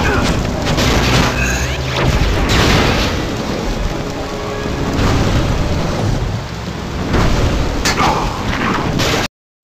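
Fiery blasts whoosh and roar in bursts.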